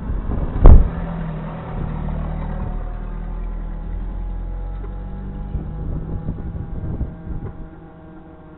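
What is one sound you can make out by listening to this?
A vehicle engine rumbles close by as a truck drives past and fades into the distance.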